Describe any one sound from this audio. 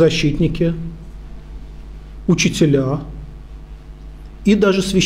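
A middle-aged man speaks calmly into a microphone in short phrases with pauses.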